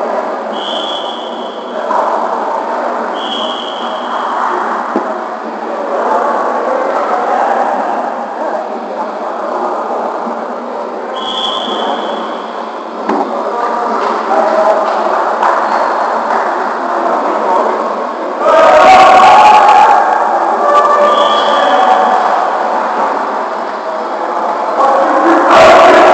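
Several men talk and call out in a large echoing gym.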